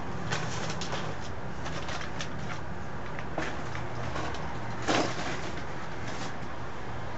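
Papers rustle close by.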